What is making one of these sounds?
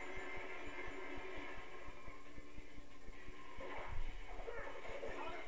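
Fast game music plays through a television speaker.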